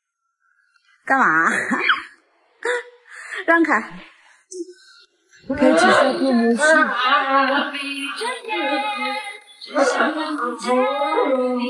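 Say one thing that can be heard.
A young man speaks and laughs playfully close by.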